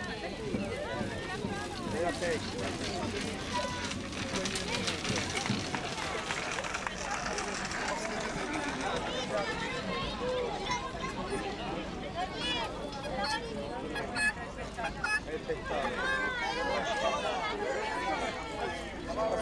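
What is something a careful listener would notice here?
Wooden cart wheels rattle along a paved road.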